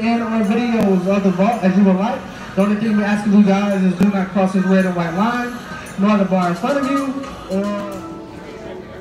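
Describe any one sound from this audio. A singer's voice rings out loudly over loudspeakers.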